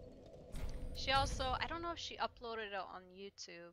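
A young woman speaks with animation close to a headset microphone.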